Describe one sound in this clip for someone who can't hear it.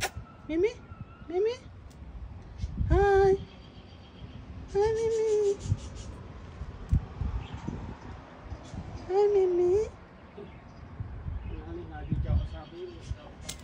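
A cat meows loudly and repeatedly, close by.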